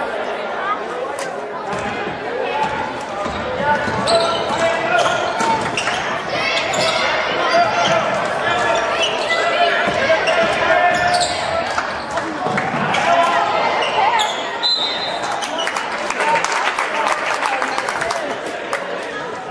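A crowd of spectators cheers and calls out in a large echoing gym.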